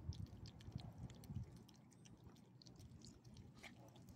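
A small dog licks food from a hand.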